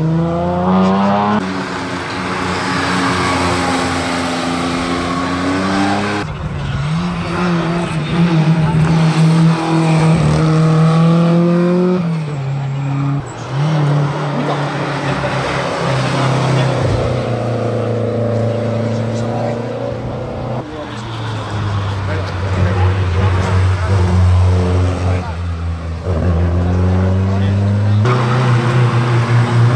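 Rally car engines roar and rev hard as cars speed past one after another.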